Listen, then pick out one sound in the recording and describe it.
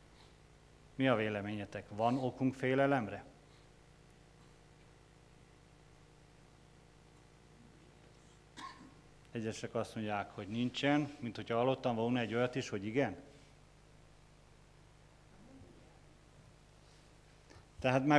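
A middle-aged man speaks calmly into a microphone, with pauses, in a room with a slight echo.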